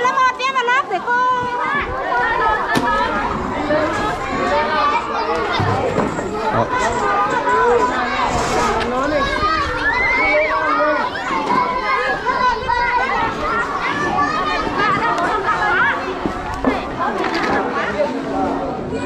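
Many children chatter and call out nearby, outdoors.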